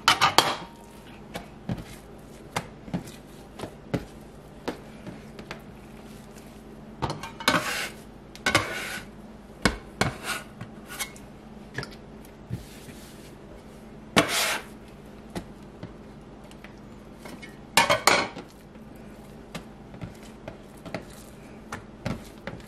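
Hands slap and press soft dough on a countertop.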